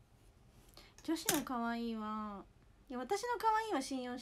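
A young woman speaks close by, with animation.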